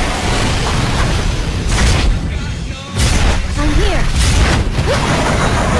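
A large beast roars and growls.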